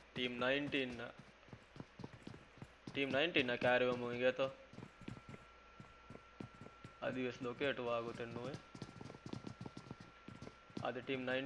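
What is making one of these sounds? Footsteps thud quickly on a wooden floor.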